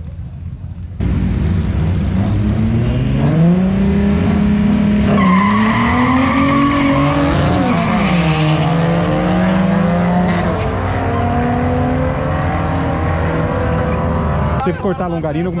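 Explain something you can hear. A car engine roars and rises in pitch as the car accelerates hard.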